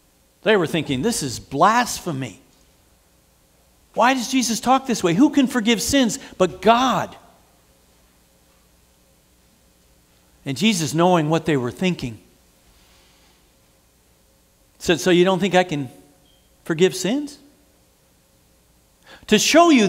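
A middle-aged man speaks calmly into a nearby microphone, in bursts with pauses.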